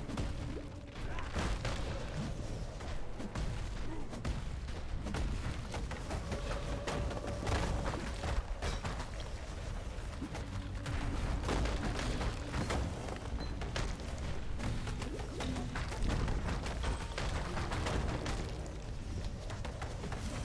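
Fiery spell blasts whoosh and crackle in a game's combat.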